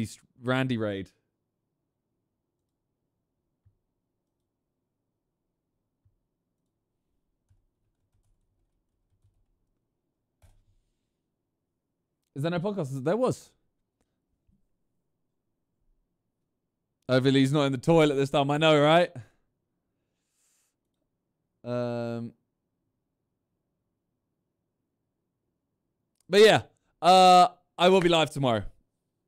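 A young man speaks into a close microphone in short, casual bursts with long pauses.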